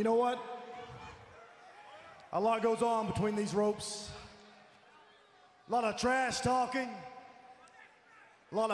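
A man speaks forcefully into a microphone in a large echoing arena.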